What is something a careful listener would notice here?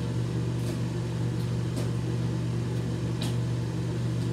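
A man spits into a sink.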